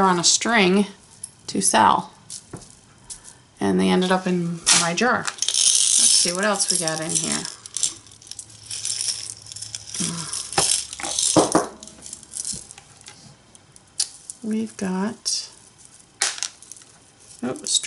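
Beads and jewellery clink and rattle.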